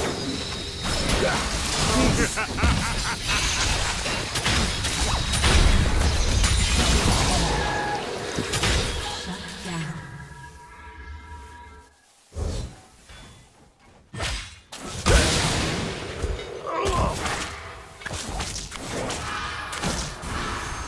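Game combat effects clash, whoosh and burst in quick succession.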